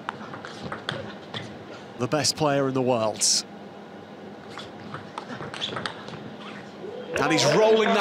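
A table tennis ball clicks back and forth off paddles and the table.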